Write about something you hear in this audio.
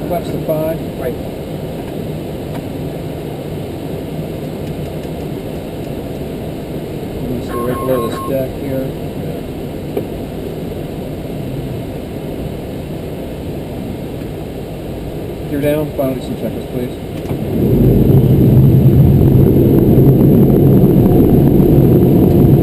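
An aircraft engine drones steadily, growing louder near the end.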